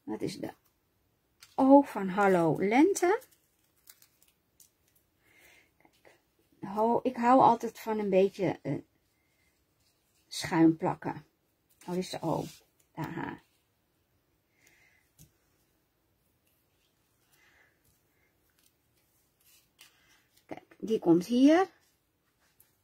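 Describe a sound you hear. Paper pieces rustle and tap softly as they are pressed down.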